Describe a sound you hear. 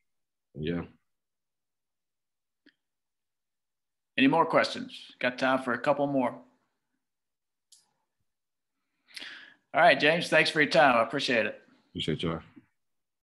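A young man speaks calmly into a close microphone, pausing between phrases.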